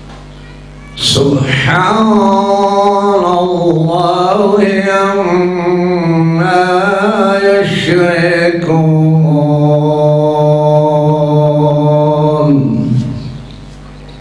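A man chants a long, melodic recitation loudly through a microphone, with echo.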